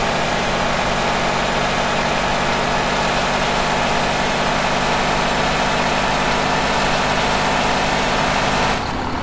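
A truck engine drones steadily as it speeds along.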